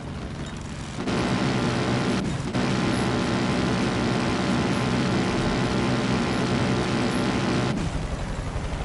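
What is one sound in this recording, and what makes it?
Wind rushes loudly past a plane, growing louder and then dropping away.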